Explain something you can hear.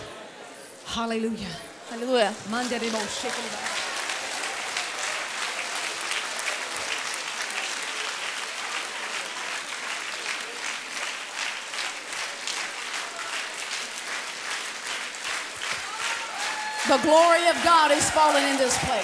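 A woman sings loudly through a microphone.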